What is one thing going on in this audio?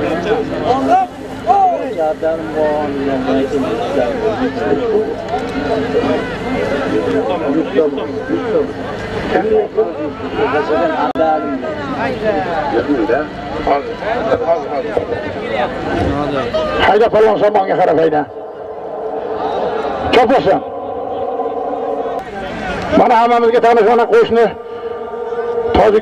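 A crowd of men shout and cheer outdoors.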